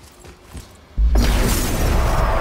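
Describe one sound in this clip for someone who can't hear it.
A heavy blow lands with a loud bursting crash.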